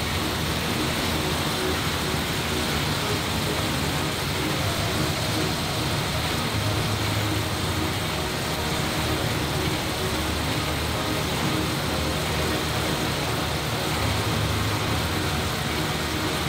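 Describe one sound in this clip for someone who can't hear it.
Air bike fans whoosh and roar steadily.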